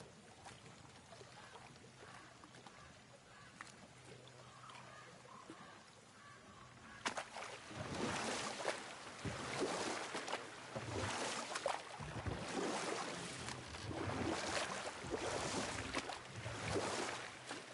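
Oars splash and water laps against a small wooden boat.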